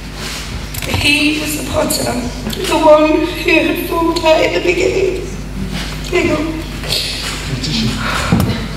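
A young woman speaks tearfully into a microphone over loudspeakers.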